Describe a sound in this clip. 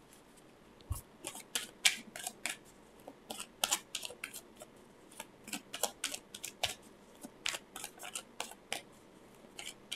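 Playing cards are shuffled with quick, crisp riffling clicks.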